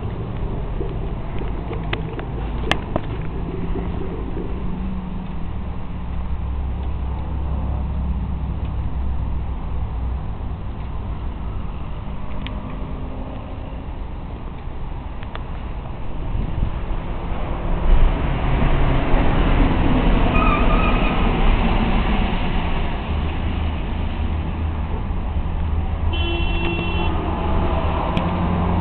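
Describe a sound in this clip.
Traffic hums steadily in the distance.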